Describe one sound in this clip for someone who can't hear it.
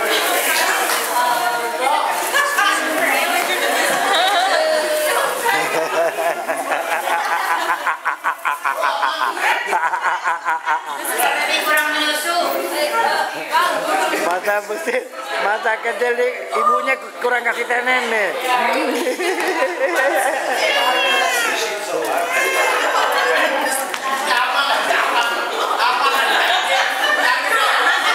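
A crowd of men and women cheers and shouts excitedly nearby.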